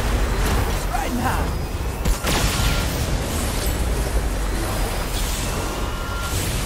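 Sword slashes clash with sharp impacts.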